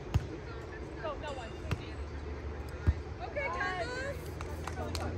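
Young women call out to each other on the court.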